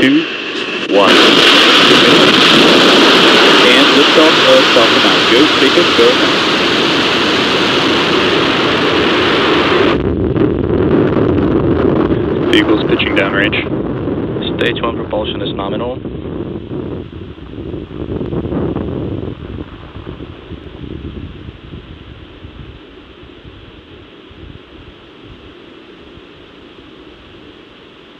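A rocket engine ignites with a thunderous roar that slowly fades into the distance.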